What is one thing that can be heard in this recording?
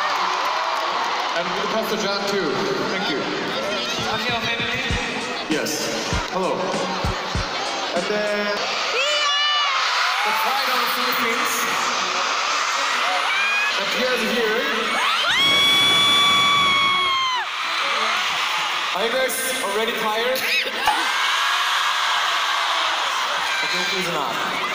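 A crowd screams and cheers loudly.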